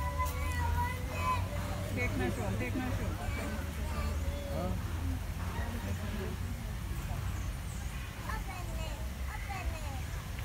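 A peacock pecks and rustles at dry leaves on the ground.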